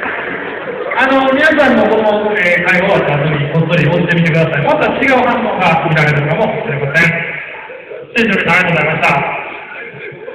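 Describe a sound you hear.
A man speaks with animation into a microphone over loudspeakers in an echoing hall.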